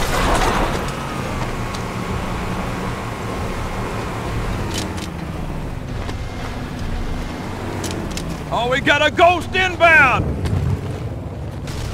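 A vehicle engine rumbles nearby.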